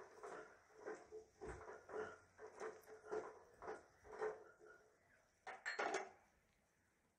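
A spatula scrapes and stirs vegetables in a metal pot.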